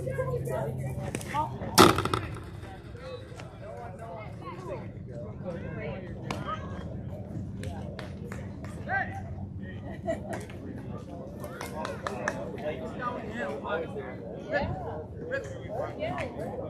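Boys and men chatter and call out across an open field.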